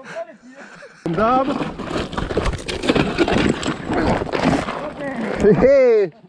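A mountain bike crashes and clatters over rocky ground.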